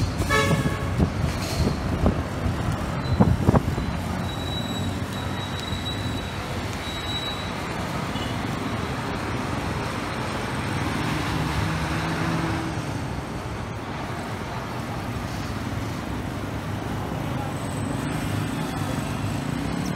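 Motorcycle engines buzz past.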